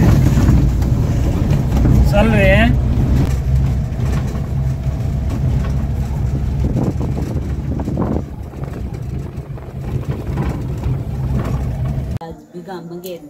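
A vehicle engine rumbles steadily from inside a car.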